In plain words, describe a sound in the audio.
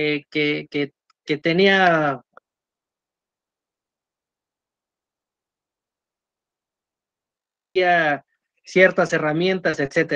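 A young man speaks calmly over an online call, pausing between phrases.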